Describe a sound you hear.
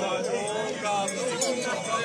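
A man strums an acoustic guitar.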